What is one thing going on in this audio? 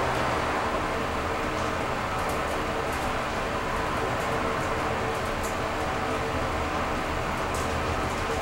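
An elevator hums and rattles steadily as it travels.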